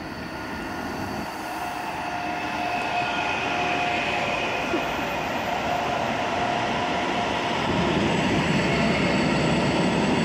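Train wheels clatter and squeal on the rails.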